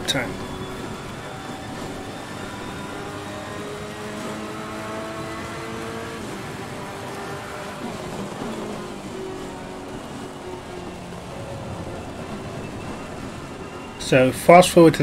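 A racing car engine revs and changes pitch as it shifts gears.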